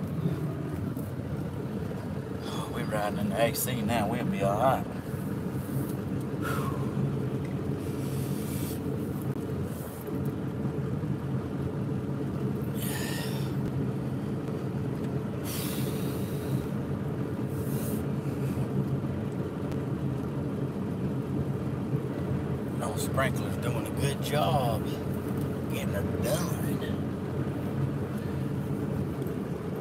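An engine hums steadily inside a moving car.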